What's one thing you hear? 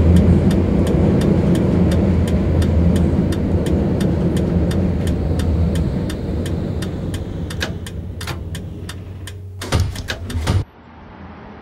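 A tram rumbles along its rails and slows down.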